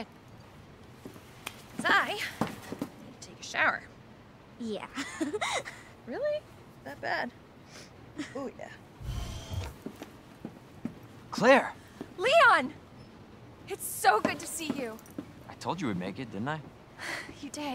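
A young woman speaks calmly and sweetly, close by.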